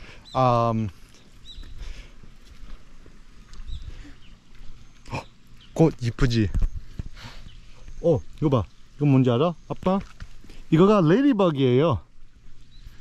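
A young man speaks close to the microphone with animation.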